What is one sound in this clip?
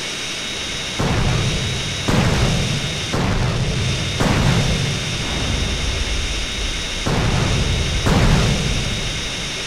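Explosions boom several times in quick succession.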